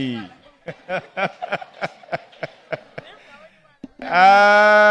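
An older man laughs into a microphone.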